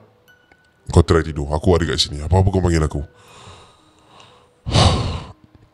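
A young man speaks with animation, close into a microphone.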